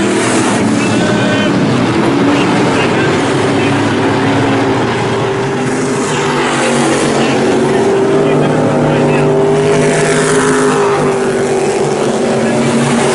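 Race car engines roar loudly as the cars speed around a track.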